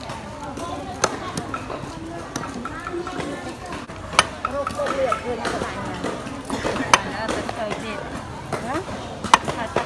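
A knife chops sharply on a wooden board.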